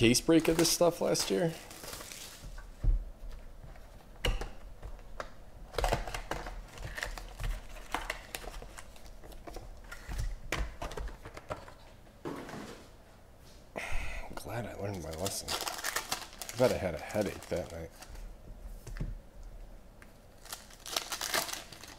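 Plastic wrappers crinkle and rustle close by.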